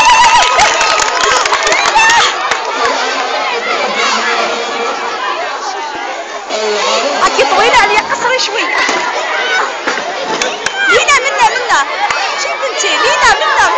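A crowd of young children chatters and shouts excitedly close by, outdoors.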